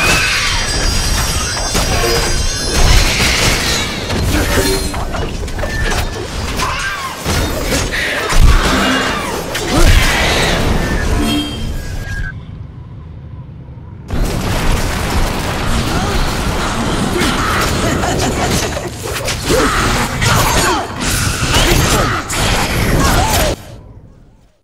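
Blades slash and clang in a frantic fight.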